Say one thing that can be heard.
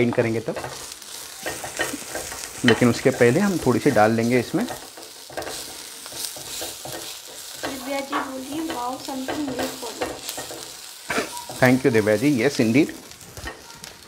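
A spatula scrapes and stirs vegetables in a pan.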